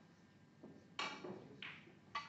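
A snooker cue strikes the cue ball.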